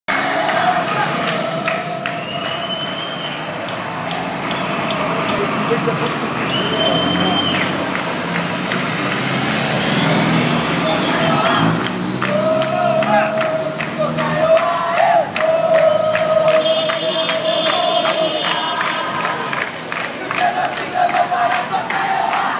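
Traffic passes along a busy street.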